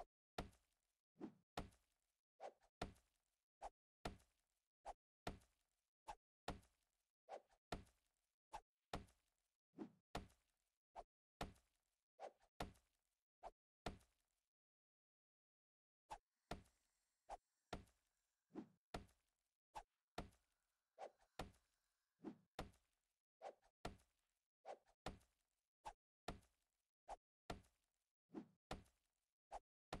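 A heavy tool strikes wood and metal again and again in quick, even blows.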